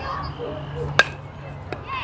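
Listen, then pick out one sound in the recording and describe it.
A metal bat cracks sharply against a ball.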